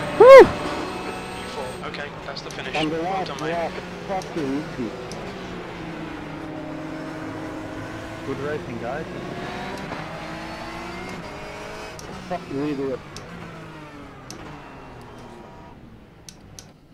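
Racing car engines roar, rising and falling in pitch as the cars speed through bends.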